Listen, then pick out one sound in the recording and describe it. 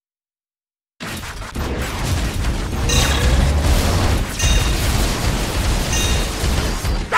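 Heavy metallic footsteps thud rapidly over ground.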